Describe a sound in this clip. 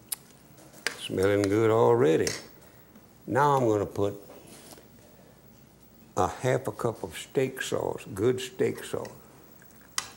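An elderly man talks calmly into a microphone.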